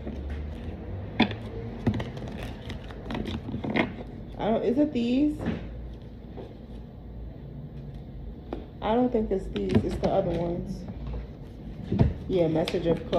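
Cards flick and tap as a woman shuffles them.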